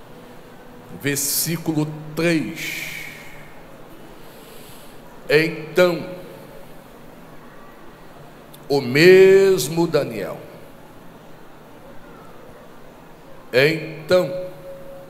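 A man preaches into a microphone in short, emphatic bursts with pauses between, heard through a loudspeaker in a reverberant hall.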